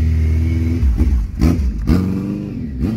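A motorcycle pulls away, its engine rising in pitch.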